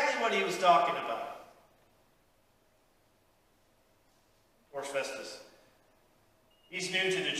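A man speaks calmly through a microphone in a room with a slight echo, pausing between phrases.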